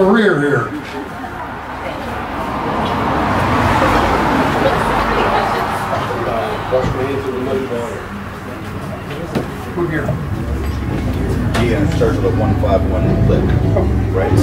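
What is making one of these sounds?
A string band plays guitars, banjo and fiddle together outdoors.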